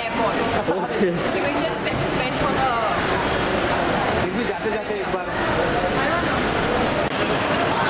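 A young woman speaks briefly and cheerfully.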